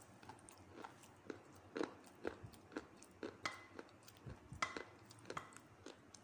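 A spoon scrapes and clinks in a bowl of wet clay.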